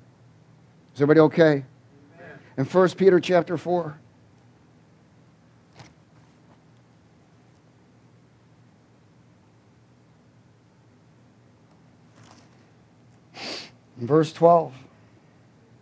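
A man reads aloud slowly into a microphone, with long pauses.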